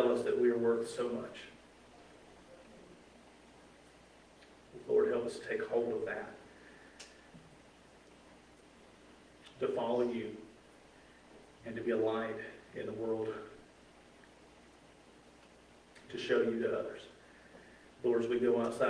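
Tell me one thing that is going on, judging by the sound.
A man speaks calmly through a microphone in short phrases with long pauses.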